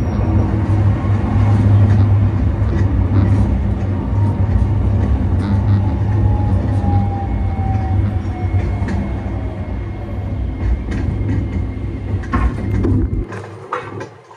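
A vehicle's engine rumbles low and steady from inside as it drives along, then suddenly goes quiet.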